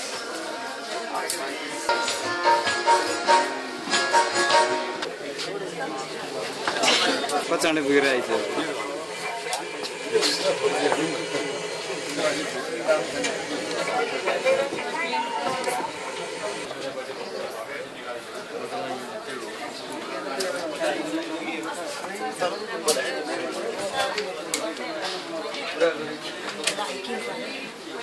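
A crowd of men and women chatters nearby indoors.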